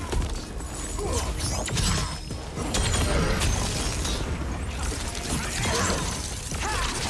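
Fighting game blows land with sharp thuds and cracks.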